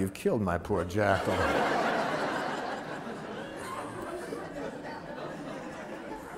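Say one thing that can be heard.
An audience laughs together.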